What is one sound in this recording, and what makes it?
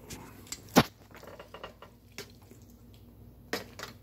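A man chews food close by.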